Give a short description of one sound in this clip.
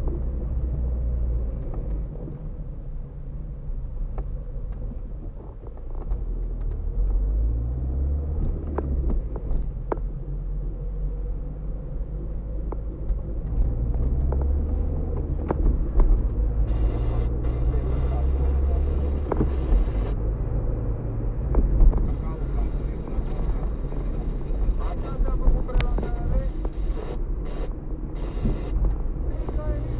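Tyres roll and rumble over a bumpy road surface.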